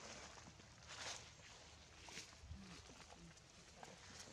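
Monkeys scramble through dry leaves.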